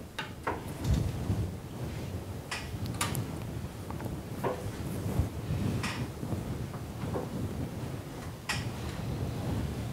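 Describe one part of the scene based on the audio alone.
A man murmurs quietly to himself, close by.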